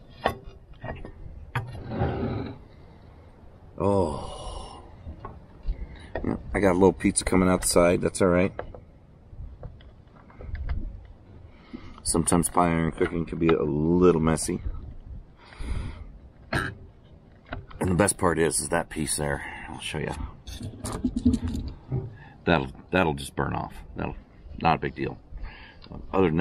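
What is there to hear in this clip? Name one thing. A metal pie iron clanks as its handles are moved.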